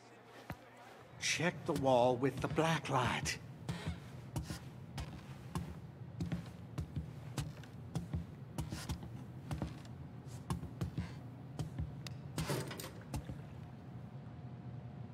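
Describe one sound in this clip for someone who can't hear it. Footsteps thud on wooden stairs and floorboards.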